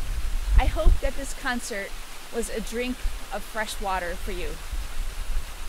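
A woman speaks calmly and close by.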